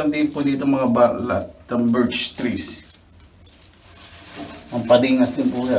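Paper banknotes rustle in a man's hands.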